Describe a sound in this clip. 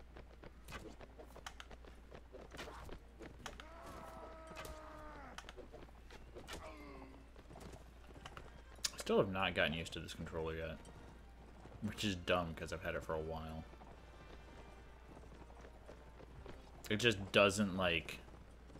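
Horses gallop over grass with thudding hooves.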